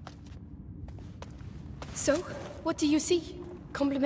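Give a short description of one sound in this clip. Footsteps scuff slowly over stone.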